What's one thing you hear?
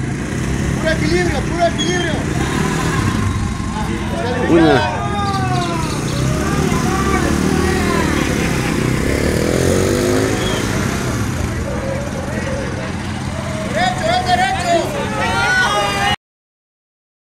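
A motorcycle engine revs as a rider pulls away.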